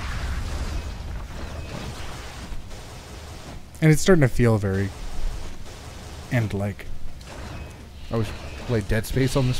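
Weapon blasts burst with a loud whoosh.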